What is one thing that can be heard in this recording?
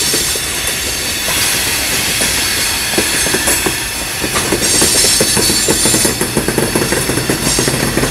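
A freight train rolls by close up with a steady rumble.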